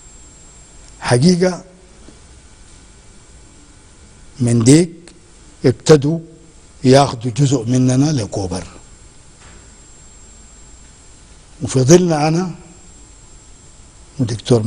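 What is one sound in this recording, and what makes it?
An elderly man speaks in short, deliberate bursts close to a microphone, pausing often.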